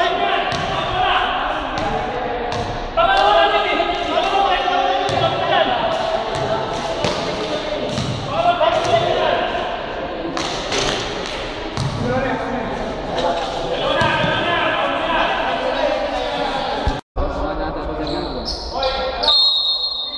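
Several men talk loudly over one another close by, in an echoing hall.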